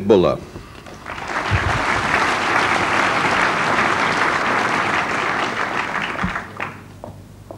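A large audience applauds.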